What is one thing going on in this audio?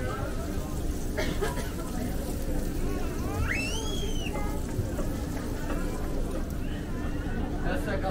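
Meat sizzles in a large pan.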